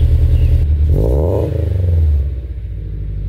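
A car engine revs up briefly and settles back down.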